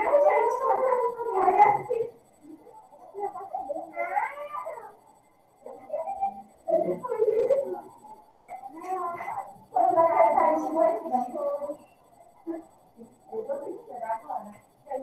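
A young woman speaks calmly through a computer microphone, in short phrases with pauses.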